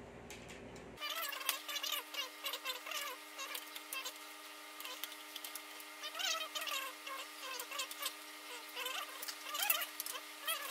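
A metal computer case knocks and rattles as it is turned over by hand.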